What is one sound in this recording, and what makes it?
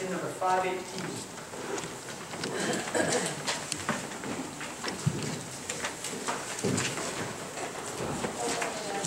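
A man speaks steadily through a microphone in an echoing hall.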